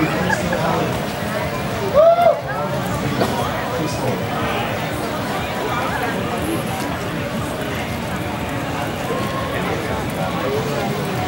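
A rock band plays loudly outdoors through loudspeakers.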